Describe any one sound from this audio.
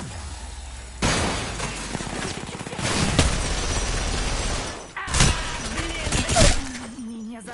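A rifle fires bursts of loud shots.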